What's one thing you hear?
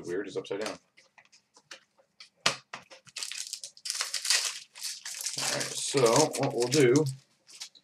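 Foil wrappers crinkle and tear as card packs are opened close by.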